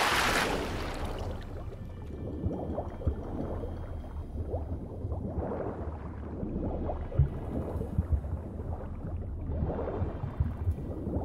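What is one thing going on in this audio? Muffled underwater bubbling and rumbling surround a diver.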